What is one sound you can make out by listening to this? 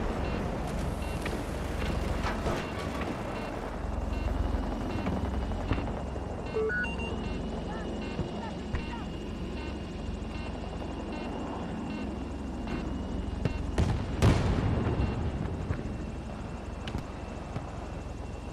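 A helicopter's rotor thumps and its engine roars steadily close by.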